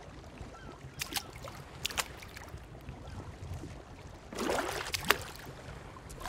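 A fishing reel clicks as a line is reeled in.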